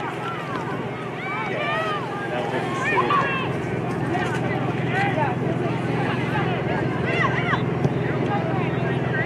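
A crowd of spectators shouts and cheers in the distance outdoors.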